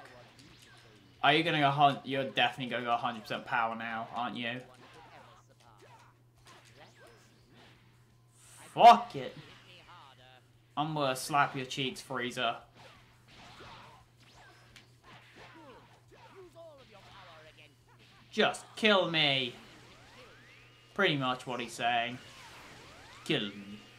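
Punches and energy blasts crack and whoosh in a fast fight.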